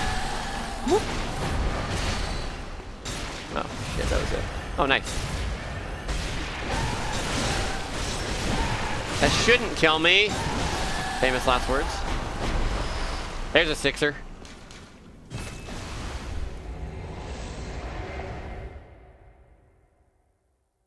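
Loud fighting sounds clash and roar.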